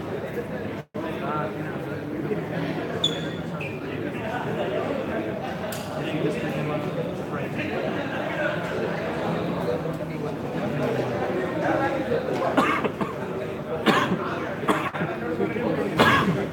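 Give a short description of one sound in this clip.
Shoes squeak on a court floor.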